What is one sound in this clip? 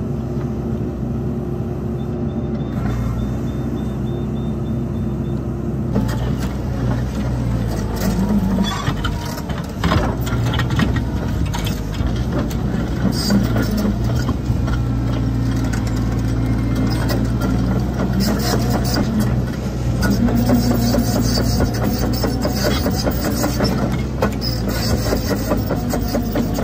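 Excavator hydraulics whine as a tiltrotator attachment works.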